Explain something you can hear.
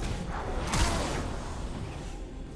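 Magic blasts and explosions crash in a fight.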